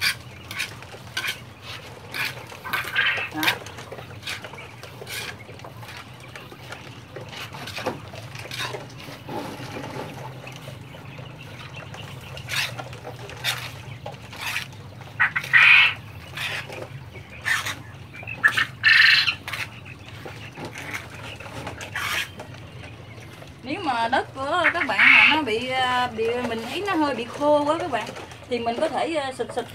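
A small trowel scrapes and rustles through loose soil and seed husks.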